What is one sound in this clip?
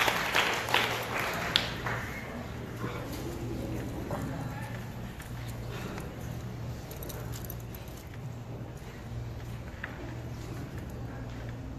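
A middle-aged man speaks to an audience in a large room, heard from a distance.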